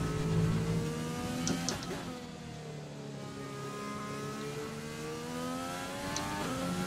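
A racing car engine whines high, dropping in pitch as it slows and then rising again as it speeds up.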